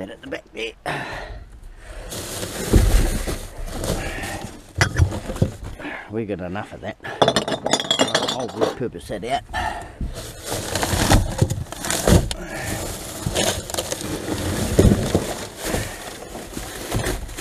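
Plastic bags and rubbish rustle and crinkle close by.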